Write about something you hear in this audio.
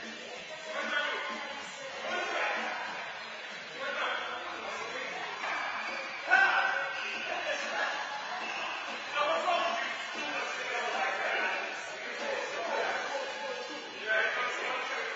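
Adult men talk in an echoing hall.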